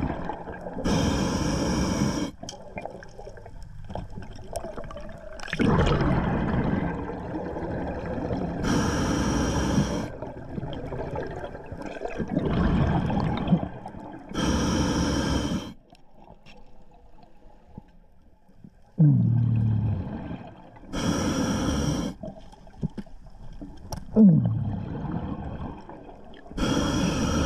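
A diver exhales through a scuba regulator in bursts of rushing, gurgling bubbles, close by underwater.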